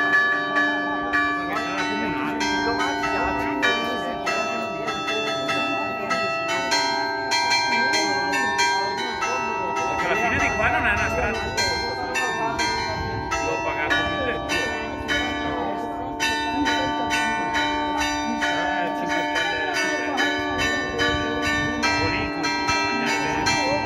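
Church bells ring out loudly and continuously, close by in the open air.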